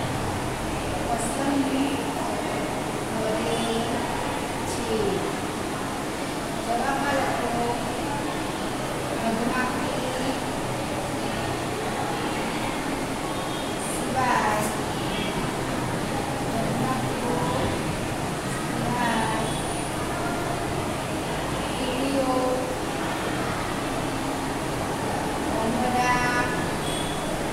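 A marker squeaks as it writes on a whiteboard.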